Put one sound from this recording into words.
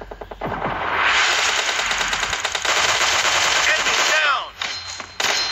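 Rapid automatic gunfire rattles close by.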